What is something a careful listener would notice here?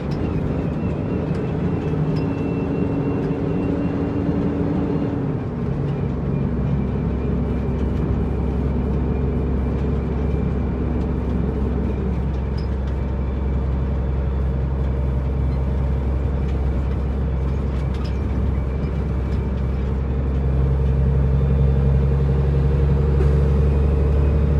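A truck's diesel engine rumbles steadily from inside the cab.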